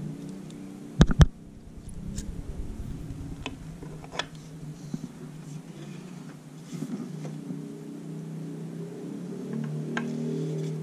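Wooden furniture parts knock and clack together close by.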